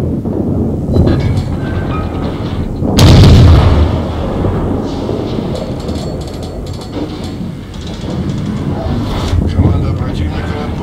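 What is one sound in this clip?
Shells burst and splash into water with dull thuds.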